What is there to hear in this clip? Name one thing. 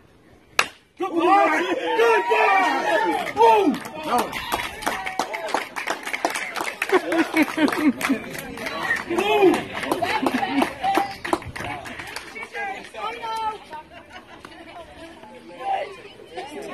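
A crowd of young players and adults cheers and shouts excitedly close by.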